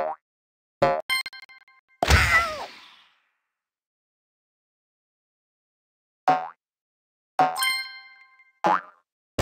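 Bright chiming game sounds ring briefly.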